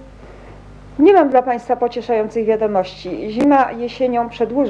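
A middle-aged woman speaks calmly into a microphone, as if reading out.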